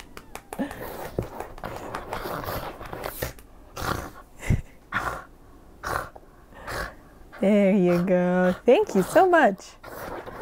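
A hand rubs a dog's fur with a soft rustling.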